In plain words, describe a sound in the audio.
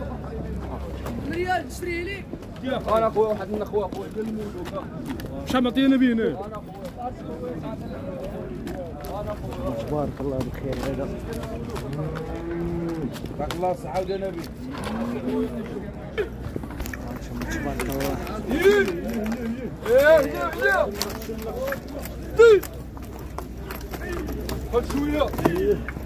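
Several men talk and call out nearby, outdoors.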